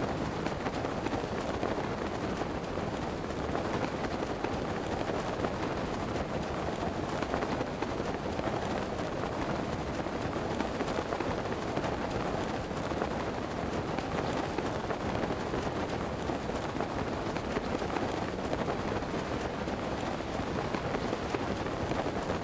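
Wind rushes steadily past a glider in a game.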